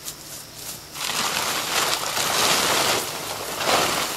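A canvas tarp rustles and scrapes as it is dragged over the ground.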